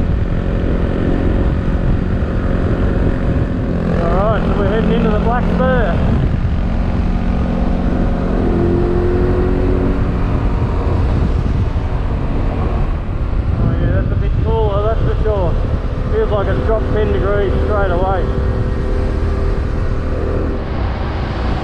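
A motorcycle engine hums steadily and rises and falls in pitch as it revs.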